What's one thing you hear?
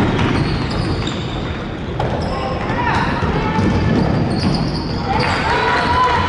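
Voices of a crowd murmur and echo through a large hall.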